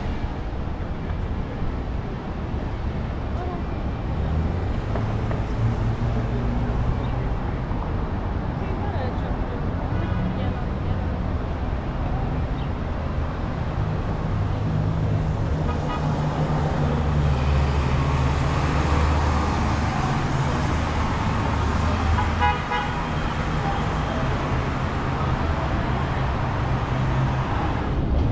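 City traffic rumbles steadily outdoors.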